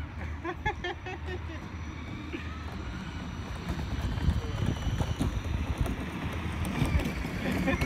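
Plastic toy car wheels rattle along a pavement.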